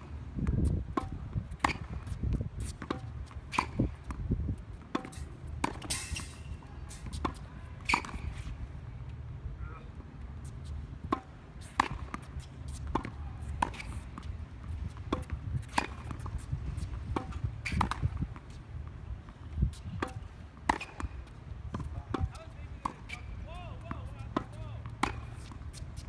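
Tennis balls are struck with a racket in a steady rally, each hit a sharp pop.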